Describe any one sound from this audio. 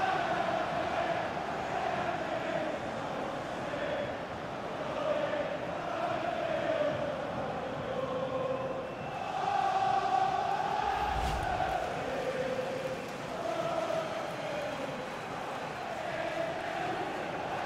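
A large stadium crowd chants loudly.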